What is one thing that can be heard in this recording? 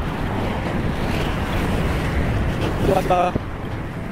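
Traffic rumbles along a nearby road.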